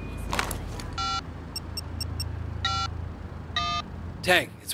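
A phone beeps as buttons are pressed.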